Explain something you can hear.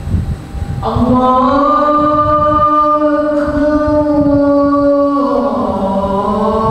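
A man recites in a long, drawn-out melodic chant through a microphone.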